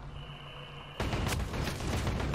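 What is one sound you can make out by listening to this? A short electronic click sounds.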